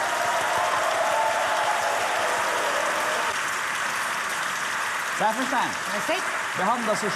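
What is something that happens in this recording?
A large audience applauds and cheers in a hall.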